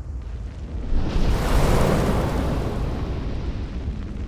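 A burst of flame roars up and slowly fades.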